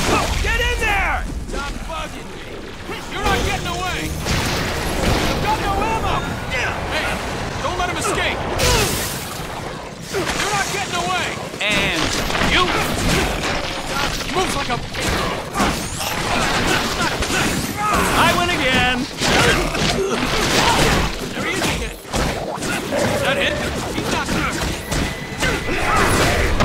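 Electric zaps crackle in bursts.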